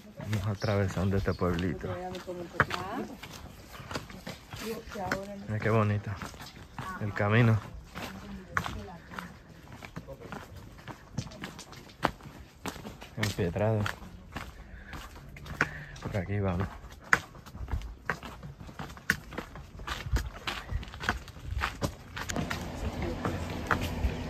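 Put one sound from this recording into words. Footsteps crunch and scuff on a stone path outdoors.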